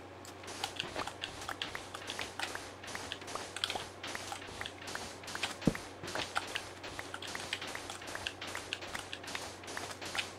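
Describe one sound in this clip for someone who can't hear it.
A shovel digs into sand with quick, repeated soft crunches.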